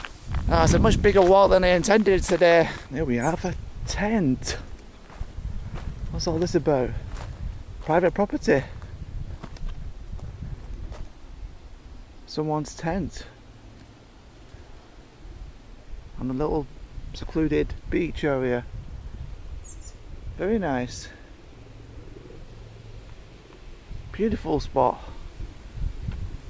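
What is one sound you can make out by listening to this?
A man talks calmly and close by, outdoors.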